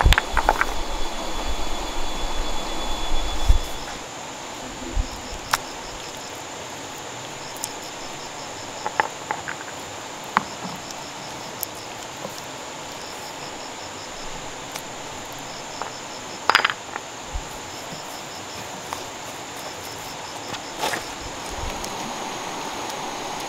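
Stones knock and scrape against each other as they are set in place.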